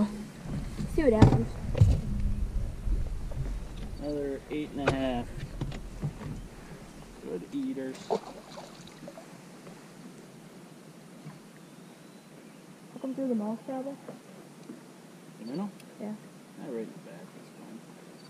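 A man talks casually nearby, outdoors.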